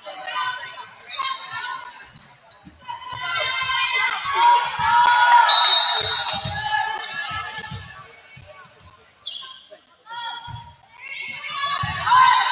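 A volleyball is hit with dull thumps.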